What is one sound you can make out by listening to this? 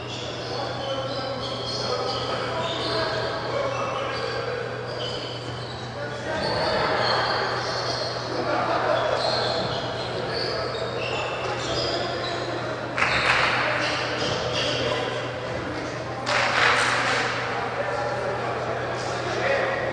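A crowd of voices murmurs and calls out in a large echoing hall.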